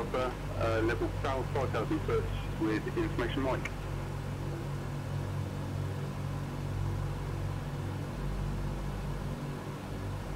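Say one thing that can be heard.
Aircraft engines drone steadily with a low hum.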